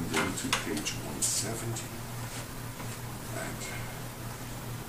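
An elderly man speaks calmly and softly, close by.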